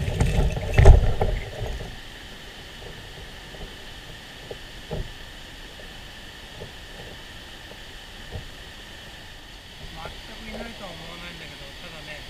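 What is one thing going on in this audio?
A river flows steadily over rocks nearby.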